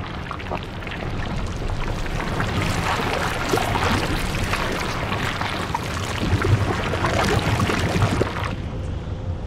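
A huge creature growls and roars loudly.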